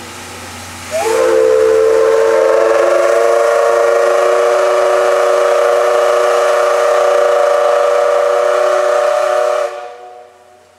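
A steam locomotive's whistle blows loudly and steadily for several seconds.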